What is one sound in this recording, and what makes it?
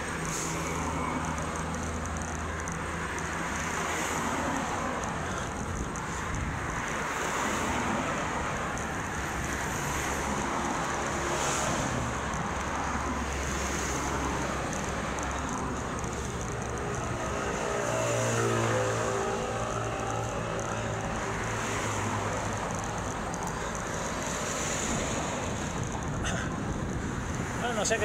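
Wind rushes loudly past a cyclist riding fast.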